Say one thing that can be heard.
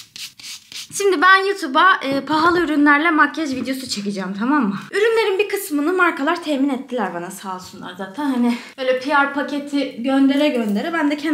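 A young woman talks calmly and close.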